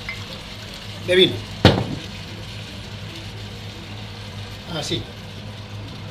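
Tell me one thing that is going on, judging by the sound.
Liquid pours from a bottle into a pan.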